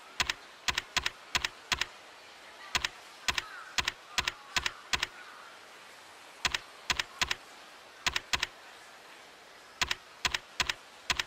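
Short, sharp menu clicks tick in quick pairs as a selection moves.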